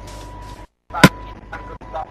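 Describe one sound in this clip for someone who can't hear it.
A wooden chest thumps open.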